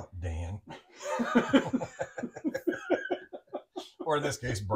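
Several men laugh together.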